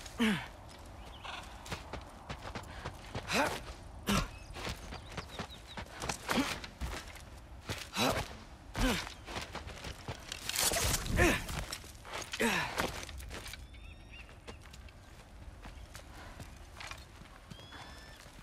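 Footsteps crunch over grass and stone.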